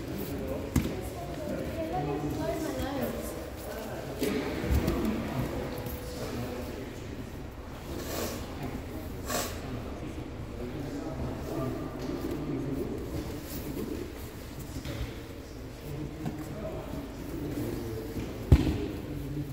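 A body thumps onto a mat.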